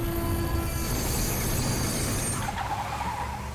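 Metal wheels screech and grind against a rail.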